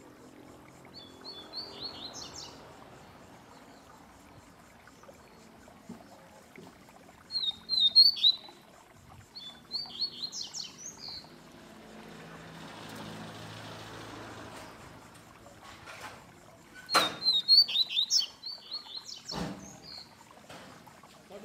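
A small caged bird sings short, bright bursts of chirps and trills close by.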